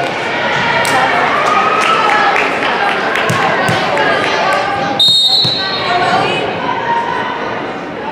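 Sneakers squeak on a hardwood gym floor.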